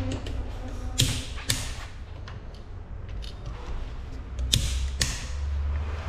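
A metal wrench clanks sharply against a wheel nut.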